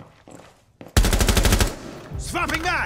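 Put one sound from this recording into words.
A rifle fires a rapid, loud burst.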